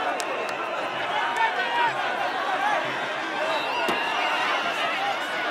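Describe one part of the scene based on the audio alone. Whistles shrill from within a crowd.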